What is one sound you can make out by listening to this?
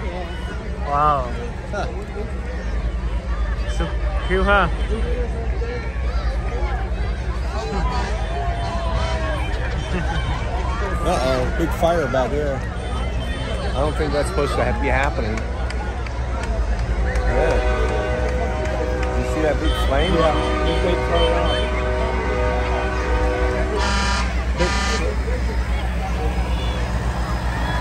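A crowd of adults and children chatters and calls out nearby outdoors.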